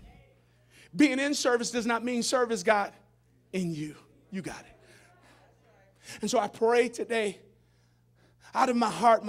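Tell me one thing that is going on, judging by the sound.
A man preaches loudly and with fervour into a microphone, heard through loudspeakers in a large echoing hall.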